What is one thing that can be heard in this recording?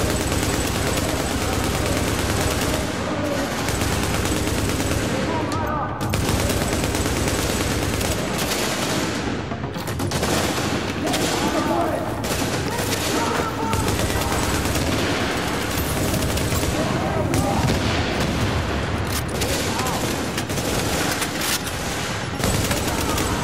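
Rapid gunfire rattles throughout.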